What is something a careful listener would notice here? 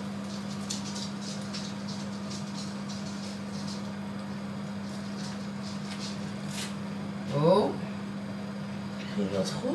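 Utensils clink lightly against a pan.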